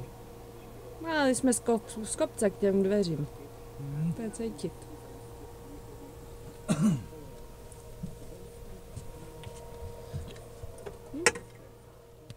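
A man talks close by in a relaxed way.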